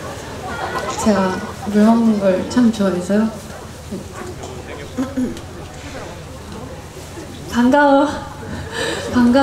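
A young woman speaks with animation into a microphone over loudspeakers.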